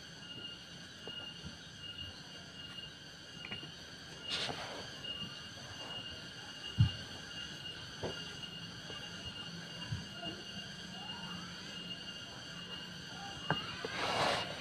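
Small wooden pieces knock and tap against each other.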